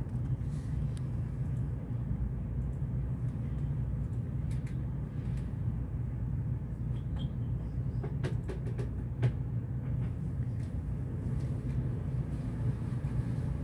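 An elderly woman softly murmurs a chant close by.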